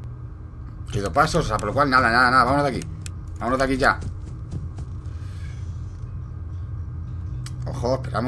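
A man speaks with animation close to a microphone, his voice drawn out and wavering.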